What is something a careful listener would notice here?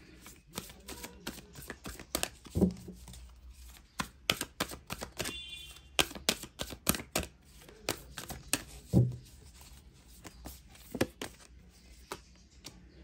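Playing cards riffle and snap as a deck is shuffled by hand.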